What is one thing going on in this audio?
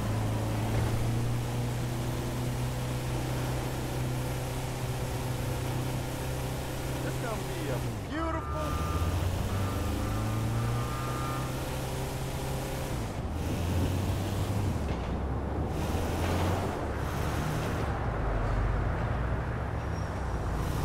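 A van engine drones and shifts through gears as it drives along.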